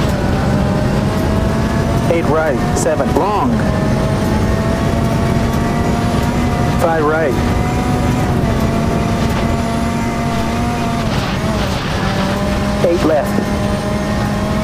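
A rally car engine roars steadily at high revs.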